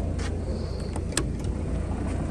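A button clicks as a finger presses it.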